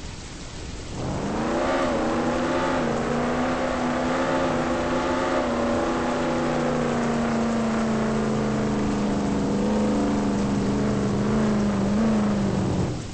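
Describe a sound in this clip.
A car engine revs up and then hums steadily.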